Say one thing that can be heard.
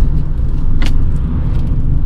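A van passes by in the other direction.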